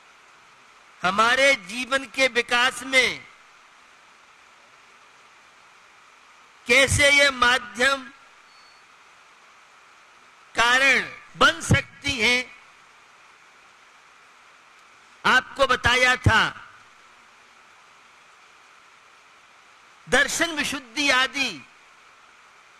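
An elderly man speaks with animation into a microphone, in short bursts with long pauses.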